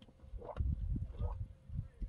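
A man drinks water from a plastic bottle in gulps.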